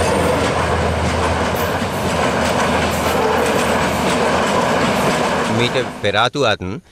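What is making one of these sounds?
A train rushes past close by with a loud rumble.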